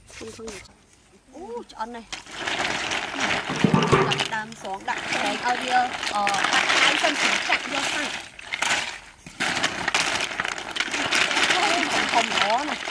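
Young women talk with each other nearby.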